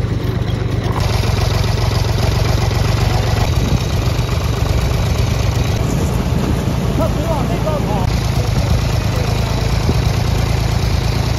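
Water splashes and churns under turning tyres.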